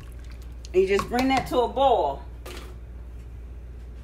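A metal spoon stirs and scrapes inside a pot.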